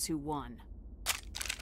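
A woman speaks firmly and close.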